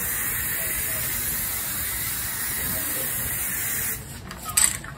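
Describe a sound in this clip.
A spray can hisses steadily up close.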